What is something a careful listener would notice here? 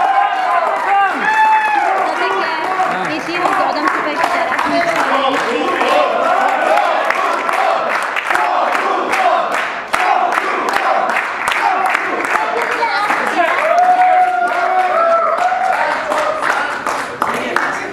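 A crowd claps along in rhythm.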